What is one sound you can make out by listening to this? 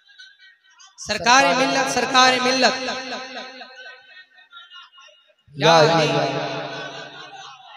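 Two young men sing loudly together through microphones.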